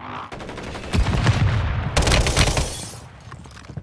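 Glass shatters loudly as a window breaks.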